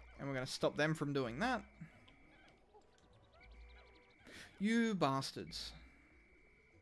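Small cartoon creatures chirp and sing in quick, bouncy high-pitched bursts.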